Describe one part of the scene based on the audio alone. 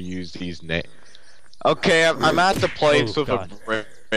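An axe swings and hits with a heavy thud.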